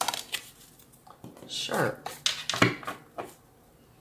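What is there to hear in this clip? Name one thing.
A card is set down on a wooden table.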